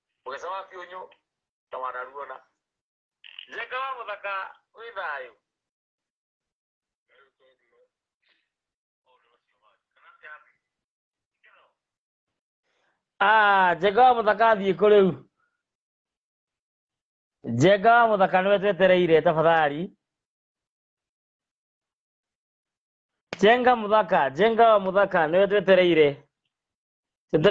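A man speaks with animation close to a microphone, in bursts with pauses.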